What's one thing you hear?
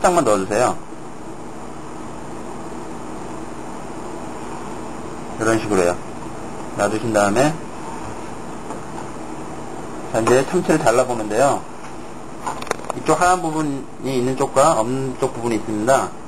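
A knife slices softly through raw fish.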